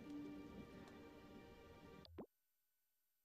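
Cheerful game music plays, then cuts off suddenly.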